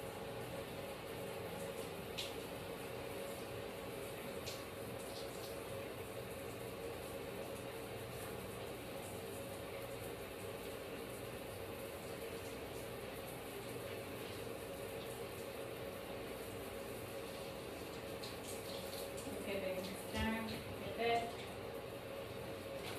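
Gloved hands scrub lathered hair.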